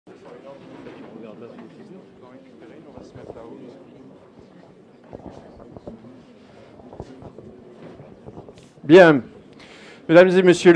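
A crowd of people murmurs and chats quietly in a room.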